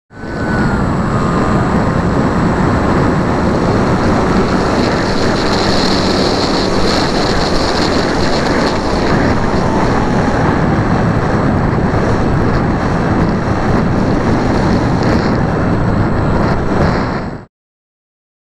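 Wind roars loudly past a small model plane in flight.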